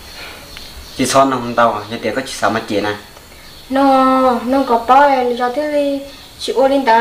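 A young man speaks close by in a calm voice.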